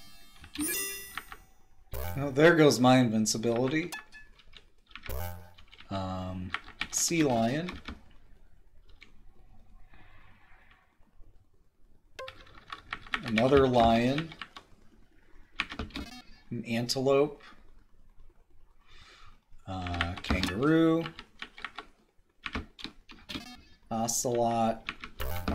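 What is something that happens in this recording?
Short electronic game beeps chirp.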